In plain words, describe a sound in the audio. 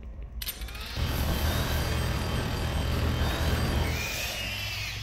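A heavy gun fires in a rapid, rattling burst.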